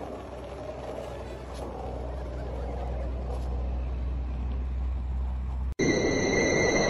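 Skateboard wheels rumble on asphalt.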